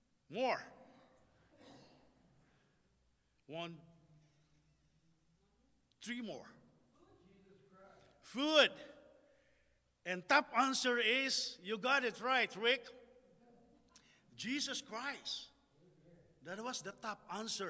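A man preaches with animation into a microphone, his voice echoing in a large room.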